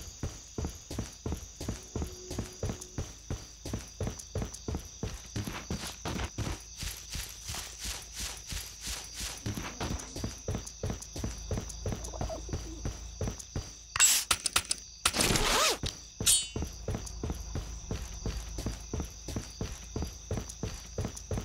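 Quick footsteps run steadily on hard ground.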